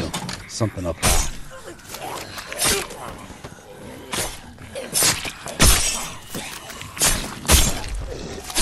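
Heavy blows thud against flesh again and again.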